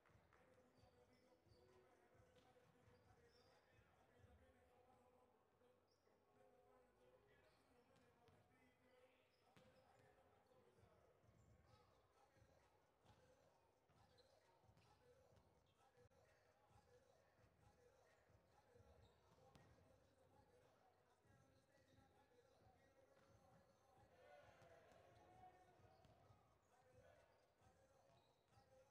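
A crowd of spectators murmurs and chatters in a large echoing gym.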